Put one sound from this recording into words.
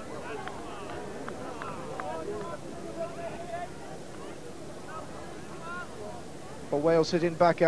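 A crowd murmurs faintly outdoors.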